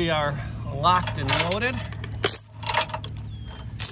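A metal chain clinks and rattles.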